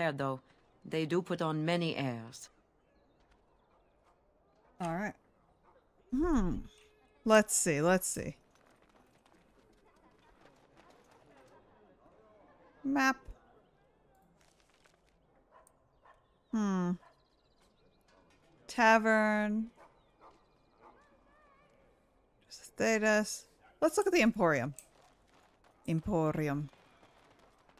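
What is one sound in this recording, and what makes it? A young woman talks into a microphone in short, lively bursts with pauses between.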